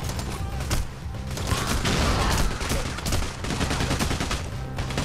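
Gunfire bursts out in quick, loud shots.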